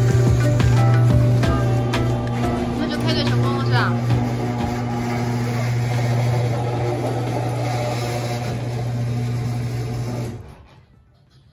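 A garage door rattles as it rolls open.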